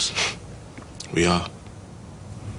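A young man speaks in a low, tense voice close by.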